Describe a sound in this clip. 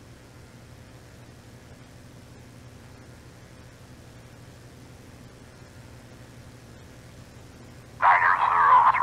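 A propeller plane's engine idles with a low, steady hum.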